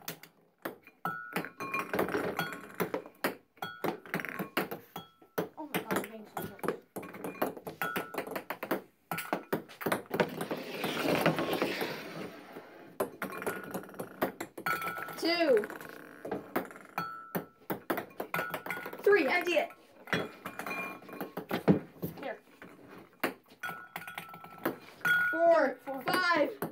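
Ping pong balls bounce on a hard table with quick, sharp clicks.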